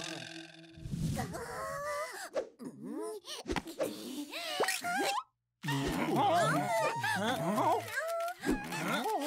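A young woman speaks with animation in a high, playful voice.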